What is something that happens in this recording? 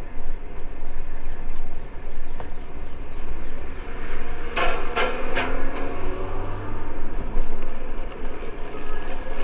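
Bicycle tyres rumble over brick paving.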